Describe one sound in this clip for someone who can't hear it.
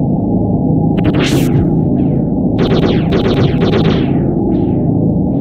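A spear thrusts with sharp swooshing hits in a video game.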